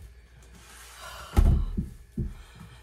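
A freezer lid thuds shut.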